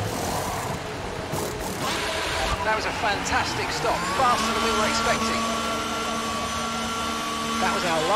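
A racing car engine hums at low speed.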